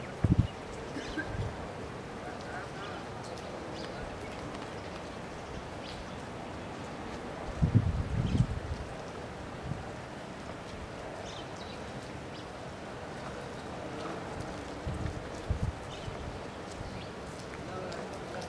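Palm fronds rustle in the wind.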